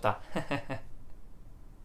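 A young man laughs softly close to a microphone.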